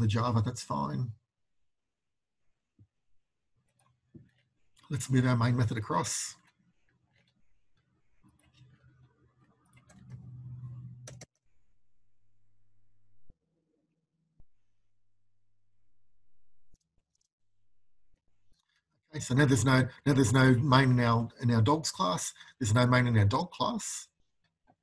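A man speaks calmly and clearly into a close microphone, in short bursts with pauses.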